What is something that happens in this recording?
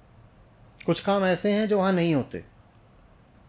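A middle-aged man speaks with emphasis into a close microphone.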